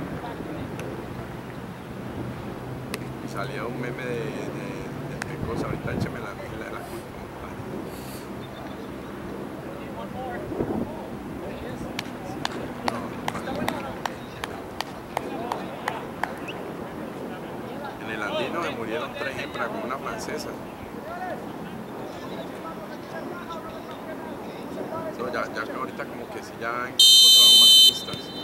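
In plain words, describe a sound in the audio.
Distant voices of players call out across an open field.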